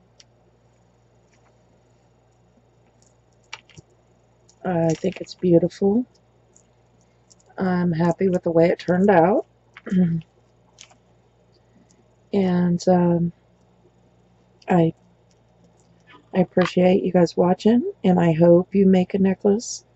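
Beads click softly as a beaded necklace is handled.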